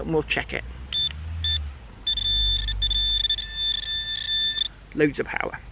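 A metal detector beeps with a steady high tone.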